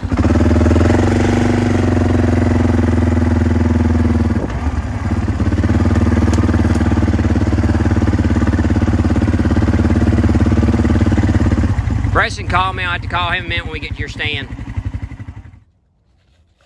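An all-terrain vehicle engine idles and rumbles close by.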